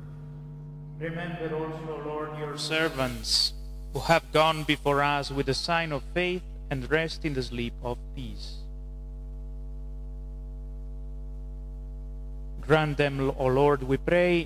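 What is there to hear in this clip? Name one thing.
A man chants through a microphone, echoing in a large hall.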